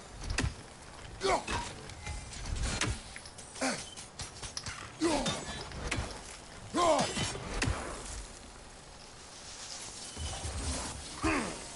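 A heavy axe whooshes through the air and thuds into wood.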